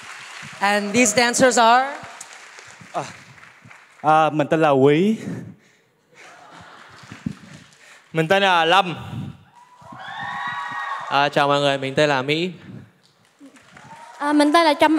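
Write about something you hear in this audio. A group of young men and women chant in loud, short bursts in unison.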